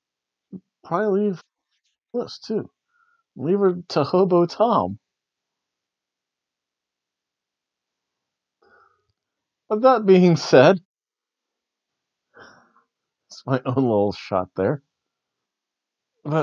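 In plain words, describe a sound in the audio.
A middle-aged man speaks close by with animation, in short bursts with pauses.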